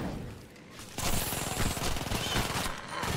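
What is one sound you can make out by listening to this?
A shotgun fires with a heavy blast.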